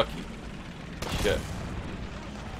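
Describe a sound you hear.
A shell explodes nearby with a sharp blast.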